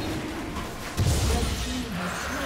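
A deep, heavy boom sounds as a large creature is slain.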